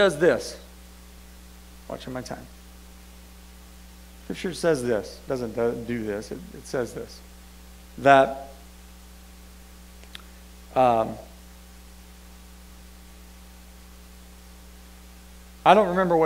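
A man speaks slowly with long pauses through a microphone in a large room.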